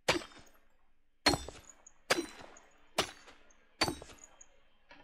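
A pickaxe strikes rock with sharp knocks.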